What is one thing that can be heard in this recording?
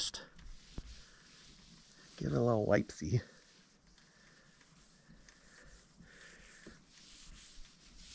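A cloth wipes across a car roof.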